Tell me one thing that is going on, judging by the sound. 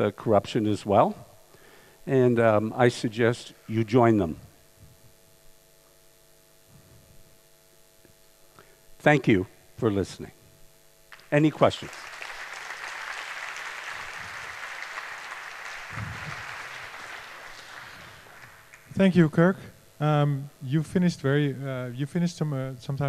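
An elderly man speaks calmly into a headset microphone, in pauses.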